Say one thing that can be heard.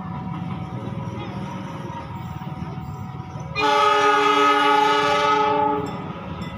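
A train rumbles along the tracks in the distance, approaching.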